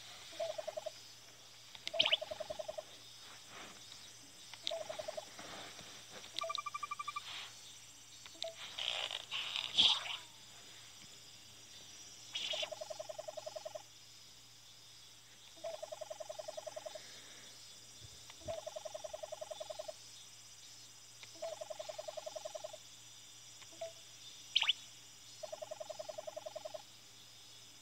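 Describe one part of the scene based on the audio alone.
Quick electronic blips chatter in short bursts as game dialogue text scrolls.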